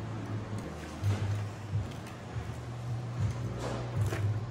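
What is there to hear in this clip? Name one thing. Loose metal parts clatter and knock against each other.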